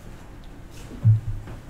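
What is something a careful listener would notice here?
A knock sounds on a lectern.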